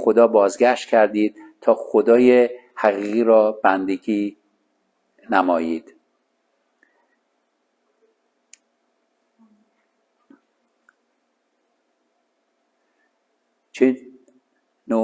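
A man speaks calmly into a clip-on microphone, pausing now and then.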